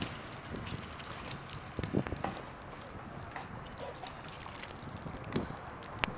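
Passersby's footsteps tap on the pavement.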